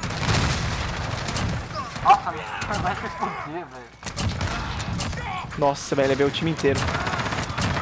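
Rapid gunshots crack and echo.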